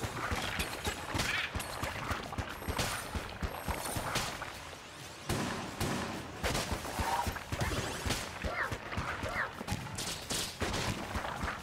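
Video game bullets pop and burst in quick bursts.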